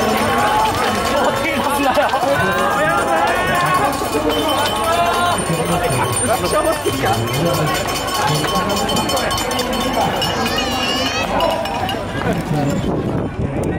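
A crowd of spectators shouts and cheers loudly nearby.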